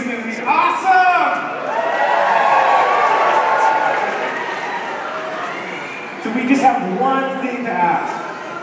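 A singer sings through loudspeakers.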